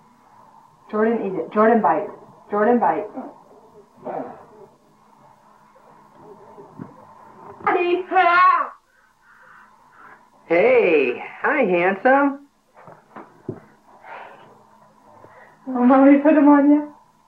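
A woman talks to a baby in a bright, playful voice close by.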